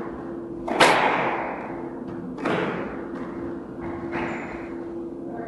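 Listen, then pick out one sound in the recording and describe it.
A squash ball smacks hard off a racket and walls, echoing around the court.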